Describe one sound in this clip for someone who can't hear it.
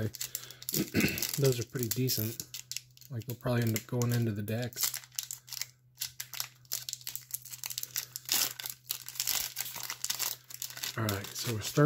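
A foil wrapper crinkles and tears as it is opened.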